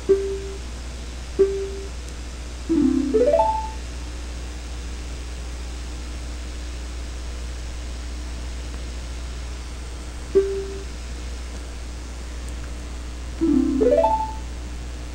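Short electronic chimes and rising beeps sound as game messages advance.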